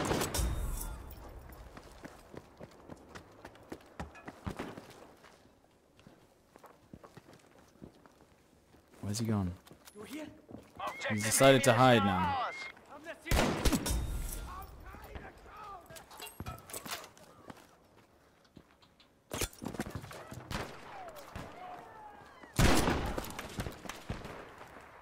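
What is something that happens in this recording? A rifle fires loud single shots that ring out and echo.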